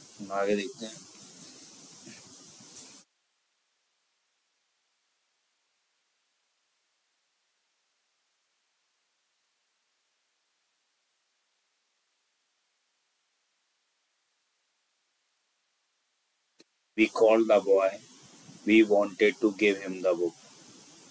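A young man speaks calmly into a microphone, explaining.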